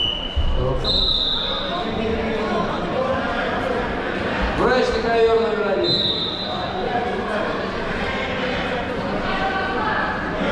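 A crowd of people chatters and calls out in a large echoing hall.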